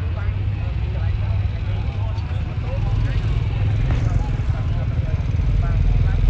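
A crowd of bystanders talks in excited voices nearby.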